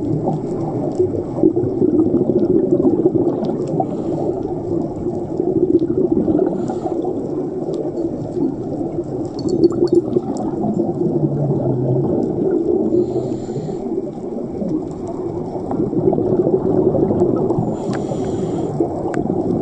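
Water rumbles and swishes in a low, steady, muffled wash underwater.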